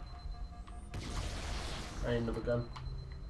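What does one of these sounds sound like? A gun fires in a short noisy burst.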